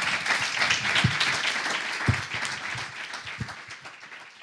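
Objects thump on a table.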